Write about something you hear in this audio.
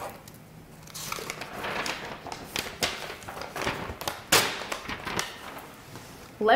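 Sheets of paper rustle and flap as pages are flipped.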